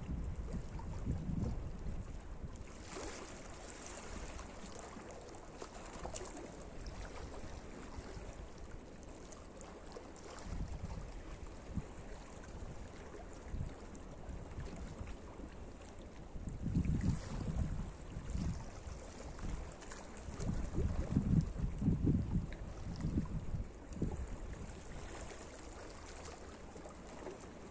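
Small waves lap gently against rocks close by.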